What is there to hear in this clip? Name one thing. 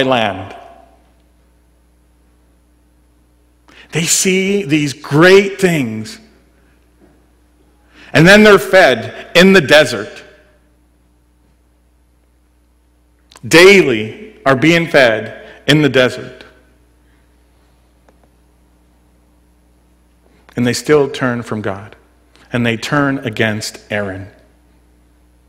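A man speaks calmly into a microphone in short bursts with long pauses.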